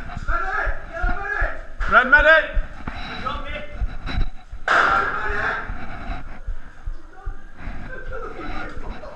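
Several men talk and call out loudly nearby, their voices echoing in a bare hall.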